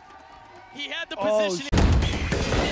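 A young man shouts with excitement into a microphone.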